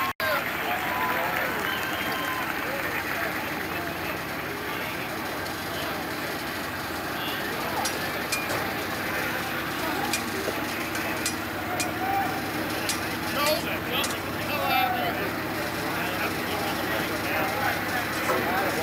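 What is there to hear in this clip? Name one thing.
A crowd of men and women talks and murmurs outdoors.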